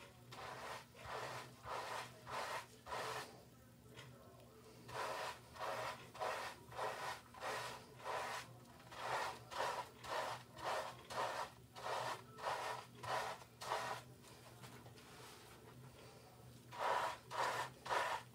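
Foamy lather squelches rhythmically as hands scrub wet hair.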